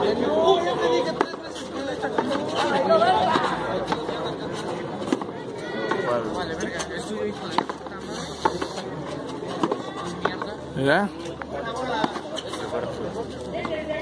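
Young men call out and talk in an open echoing court.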